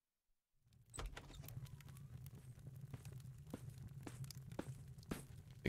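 A fire crackles steadily in a fireplace.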